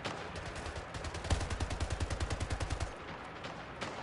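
Rapid gunfire rattles in a game.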